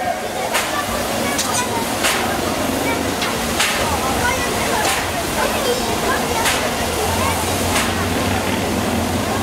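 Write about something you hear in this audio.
A steam locomotive puffs slowly as it rolls.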